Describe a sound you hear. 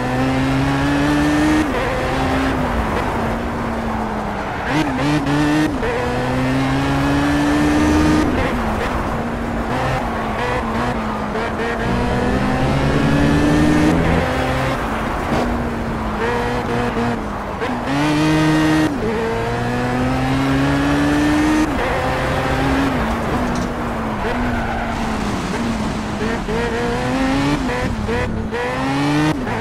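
A racing car engine roars, revving up and dropping sharply with each gear change.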